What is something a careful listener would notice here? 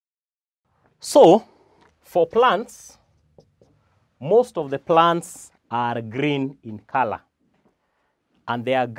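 A man speaks calmly and clearly close to a microphone.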